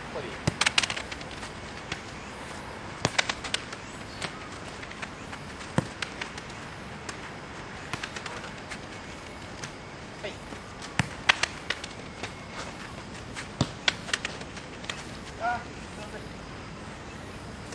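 Footsteps scuff on gravel.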